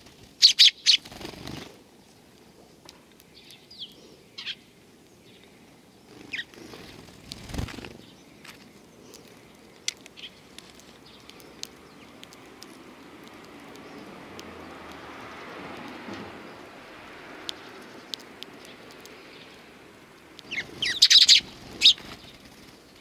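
Small wings flutter and flap close by.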